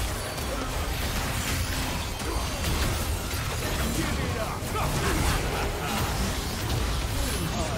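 Magic blasts whoosh and crackle in a hectic fight.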